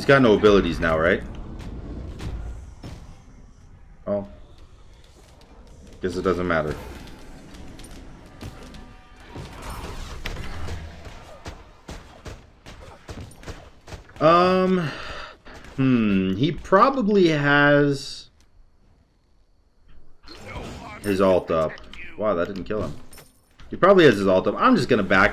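Game effects whoosh and clash in quick bursts.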